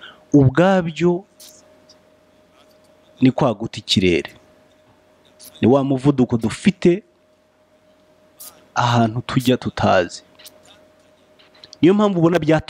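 A man speaks calmly in short phrases, close to the microphone.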